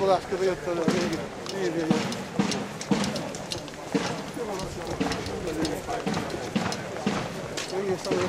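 An elderly man speaks close by.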